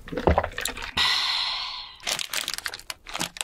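A paper wrapper rustles as a burger is handled.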